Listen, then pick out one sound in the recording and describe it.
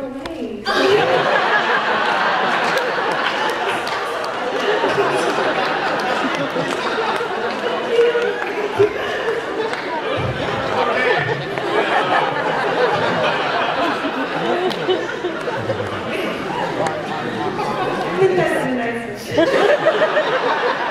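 A young woman speaks with animation through a microphone in a large echoing hall.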